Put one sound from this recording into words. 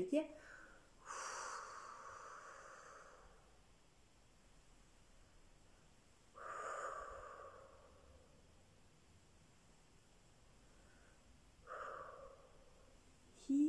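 A middle-aged woman breathes out slowly through pursed lips.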